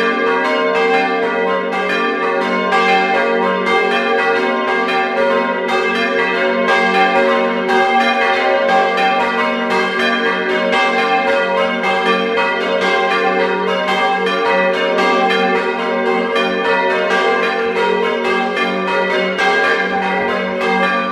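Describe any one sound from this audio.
Large bronze church bells swing full circle close by, ringing out in a loud, overlapping peal.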